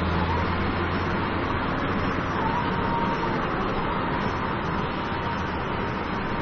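Tyres roll on the road with a steady rushing noise.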